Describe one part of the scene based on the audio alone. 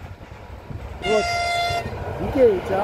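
A train horn blares loudly.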